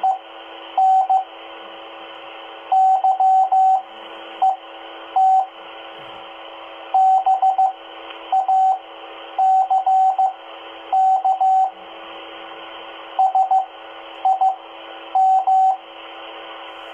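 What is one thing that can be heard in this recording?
A two-way radio hisses with steady static.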